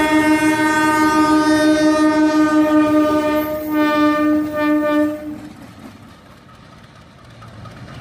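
Steel wheels clatter over the rails.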